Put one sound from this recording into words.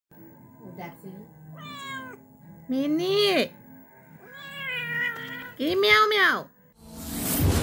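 A cat meows loudly several times close by.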